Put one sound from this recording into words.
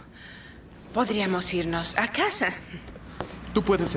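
A young woman speaks softly nearby.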